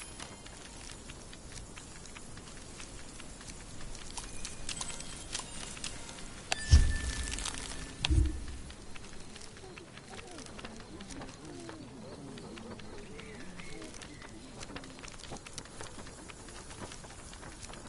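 Small footsteps patter quickly along a path.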